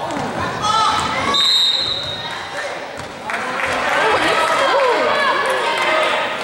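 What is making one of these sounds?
Spectators and players shout and call out in an echoing gym.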